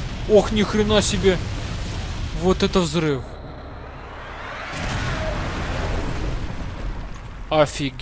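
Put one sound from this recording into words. An explosion roars and rumbles deeply.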